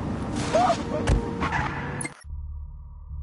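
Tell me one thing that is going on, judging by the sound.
A car engine roars.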